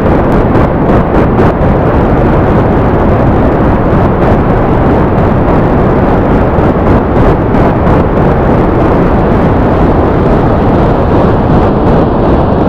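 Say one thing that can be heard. Rocket engines roar steadily.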